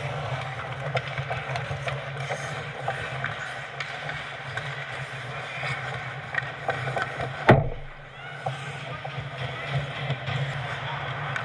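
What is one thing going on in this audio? Skates scrape and hiss on ice in a large echoing arena.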